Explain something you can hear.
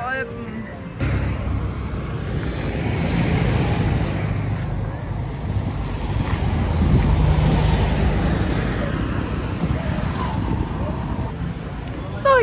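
Motorcycle engines rumble and pass by close on a busy road.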